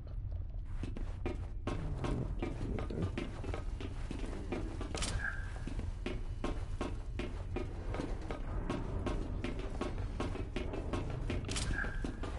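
Footsteps thud on a metal floor.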